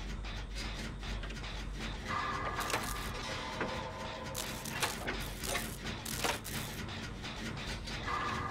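A machine rattles and clanks with sharp metallic clicks.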